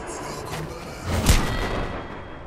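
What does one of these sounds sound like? Gunshots crack loudly nearby.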